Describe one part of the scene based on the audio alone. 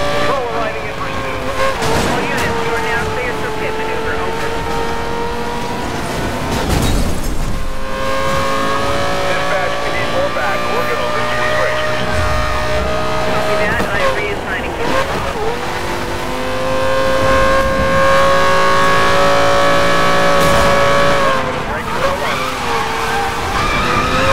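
A sports car engine roars at high speed, its pitch shifting with each gear change.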